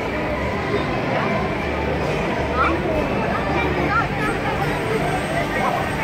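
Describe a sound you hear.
Young women laugh and shriek close by.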